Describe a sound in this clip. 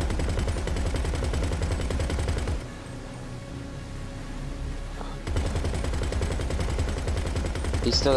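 A deck cannon fires loud shots.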